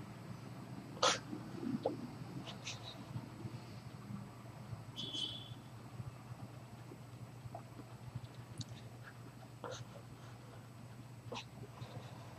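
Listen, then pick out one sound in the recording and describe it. A man breathes slowly and heavily through his open mouth.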